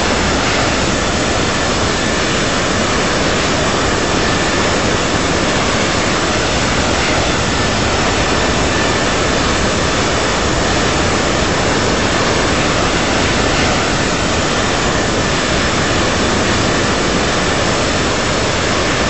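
A jet airliner's engines roar steadily.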